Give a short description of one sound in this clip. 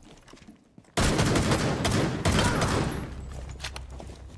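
A rifle fires a loud gunshot that echoes and slowly fades.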